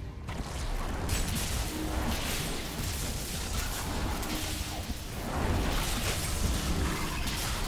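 Fire roars in bursts.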